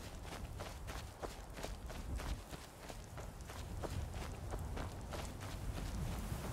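Footsteps tread steadily over grass and earth.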